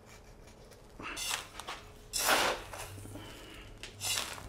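Grit pours and scrapes from a metal scoop.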